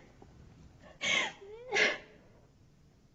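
A young woman sobs quietly.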